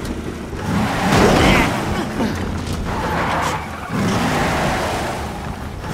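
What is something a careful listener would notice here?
A game vehicle's engine roars steadily.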